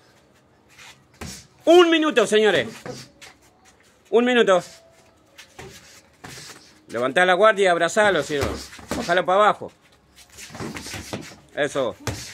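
Boxing gloves thud against each other and the body.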